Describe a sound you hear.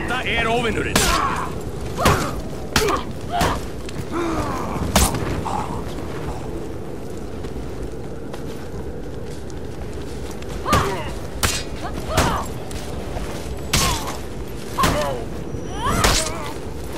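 Swords clash and strike with sharp metallic ringing.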